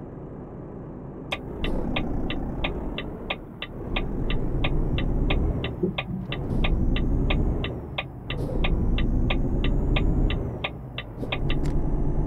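A truck engine rumbles steadily, rising and falling as it pulls.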